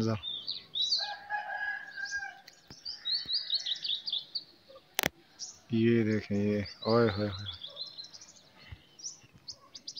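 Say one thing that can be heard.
Birds chirp high overhead.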